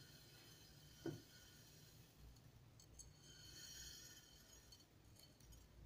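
Rice grains patter softly as they pour out of a glass.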